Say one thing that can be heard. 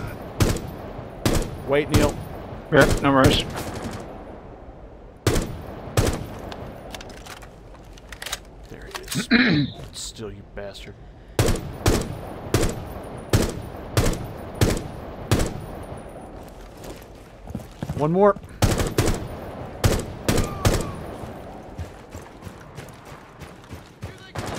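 Gunshots crack in single shots and short bursts.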